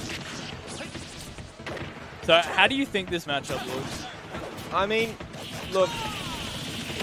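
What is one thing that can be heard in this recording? Punches, kicks and whooshes sound from a fighting video game.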